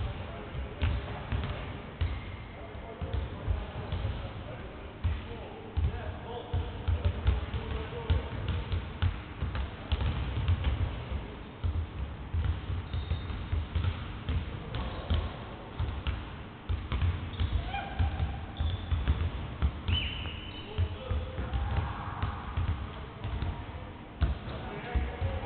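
Basketballs bounce on a wooden floor in a large echoing hall.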